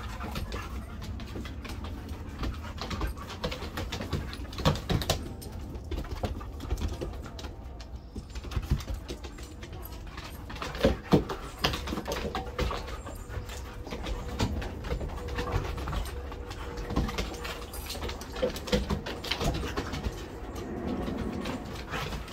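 Dogs growl playfully while wrestling.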